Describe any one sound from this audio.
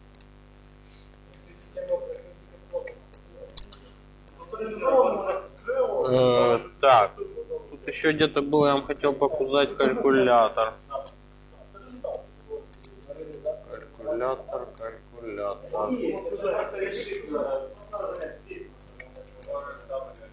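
Laptop keys click as a man types.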